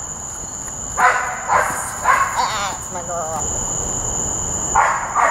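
A woman calls out commands outdoors at a distance.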